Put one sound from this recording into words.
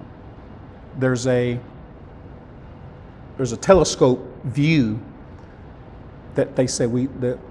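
A middle-aged man speaks calmly into a clip-on microphone, pausing between phrases.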